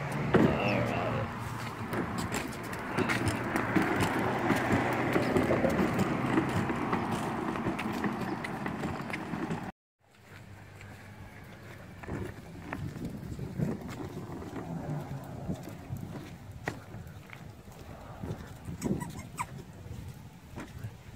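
Plastic toy car wheels rumble and rattle along a concrete pavement.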